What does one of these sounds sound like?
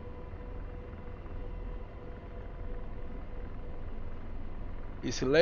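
A helicopter engine hums steadily with a low rumble.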